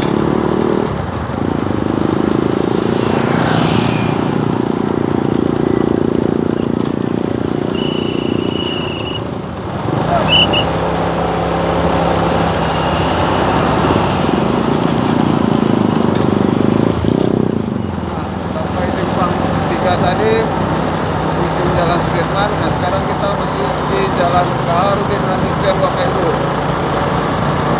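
Traffic passes by on the road.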